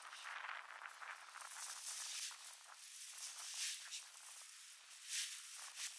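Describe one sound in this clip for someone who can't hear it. A man lifts a bundle of freshly cut green fodder, and the stalks rustle.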